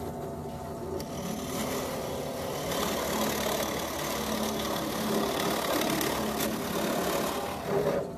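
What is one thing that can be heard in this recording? A drill bit bores into wood with a grinding whir.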